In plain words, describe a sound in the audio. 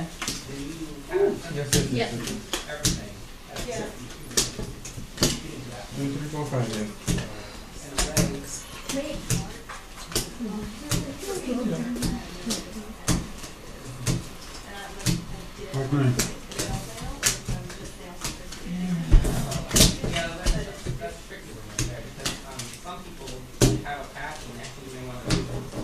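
Playing cards snap and slap down onto a wooden table.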